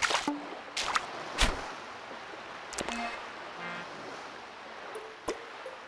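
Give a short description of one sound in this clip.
Small waves lap gently on a shore.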